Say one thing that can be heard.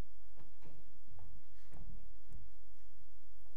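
Footsteps knock softly on a wooden floor.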